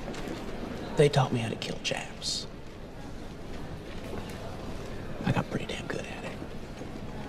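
A young man speaks quietly and intently, close by.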